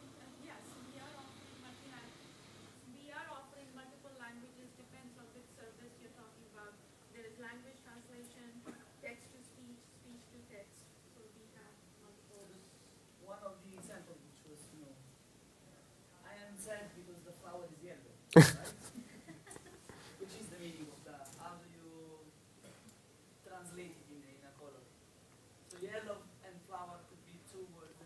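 A young man talks calmly through a microphone.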